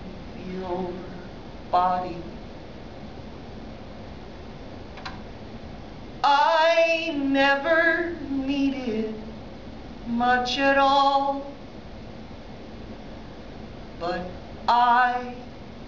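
A man sings loudly into a microphone, with long drawn-out notes.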